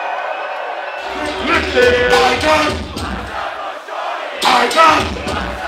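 Music with a heavy beat booms through loudspeakers.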